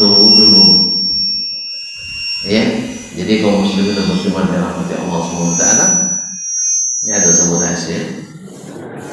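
A middle-aged man speaks with animation through a headset microphone.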